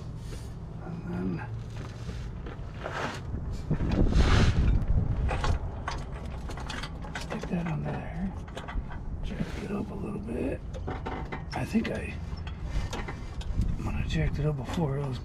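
A metal clamp clicks and rattles on an exhaust pipe.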